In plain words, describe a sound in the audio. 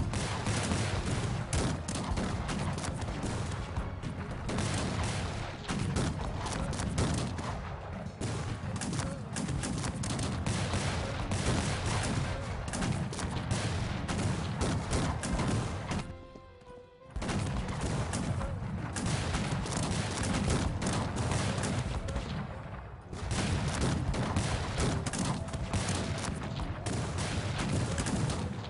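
A large battle rumbles with a dense, steady din.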